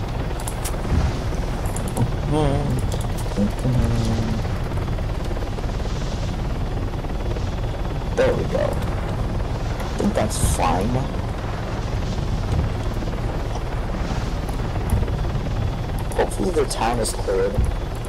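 A helicopter's rotor and engine drone steadily from inside the cabin.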